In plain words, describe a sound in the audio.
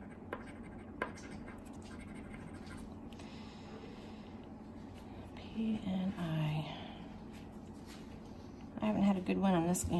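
A coin scratches at a paper card.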